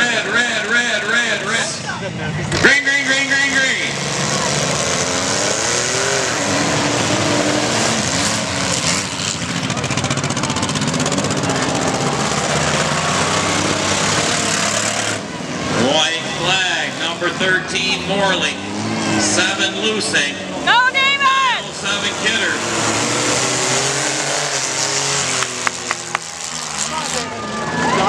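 Car engines rev and roar loudly outdoors.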